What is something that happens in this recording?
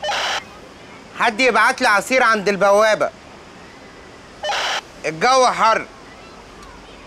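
A man talks on a phone, close by.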